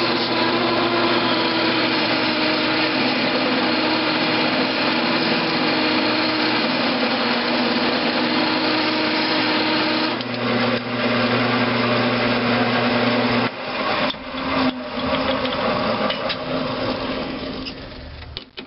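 A metal lathe hums and whirs steadily as it spins.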